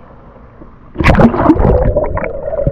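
Water splashes loudly as something plunges under the surface.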